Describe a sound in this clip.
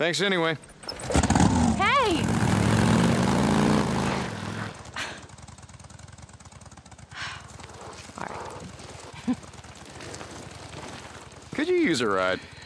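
A motorcycle engine starts and revs loudly, then idles.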